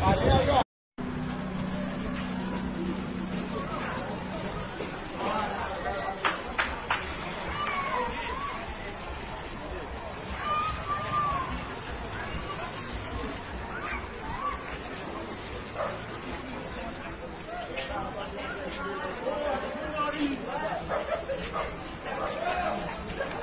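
A large crowd of men shouts and chants outdoors.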